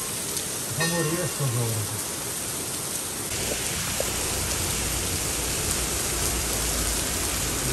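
Heavy rain pours steadily onto leaves outdoors.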